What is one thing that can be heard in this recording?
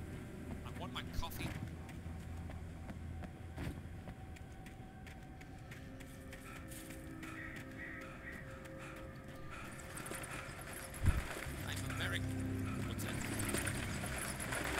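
Footsteps crunch over leaves and gravel as a man runs.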